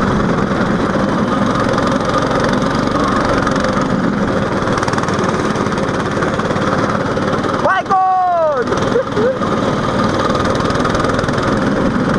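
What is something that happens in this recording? Other go-kart engines whine nearby.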